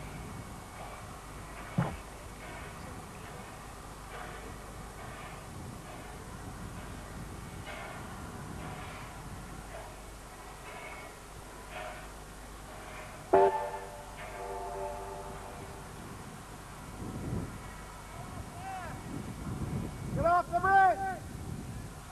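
A steam locomotive chuffs steadily as it climbs toward the listener.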